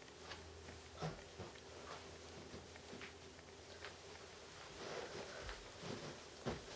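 Young boys talk quietly to each other indoors.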